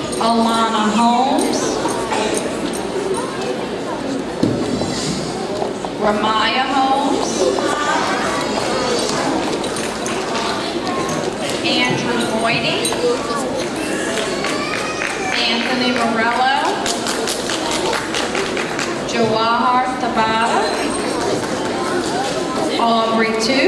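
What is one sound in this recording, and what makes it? A woman speaks steadily, with an echo as in a large hall.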